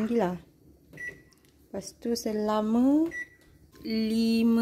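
Microwave buttons beep when pressed.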